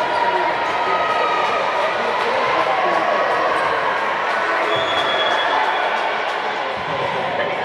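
Many young women's voices chatter and call out across a large echoing hall.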